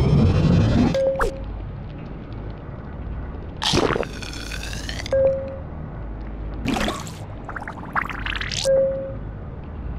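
A short electronic beep sounds several times.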